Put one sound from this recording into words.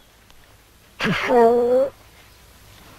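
A man speaks briefly and close by.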